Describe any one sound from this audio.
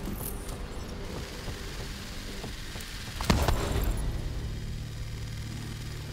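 Footsteps scuff softly on a hard floor.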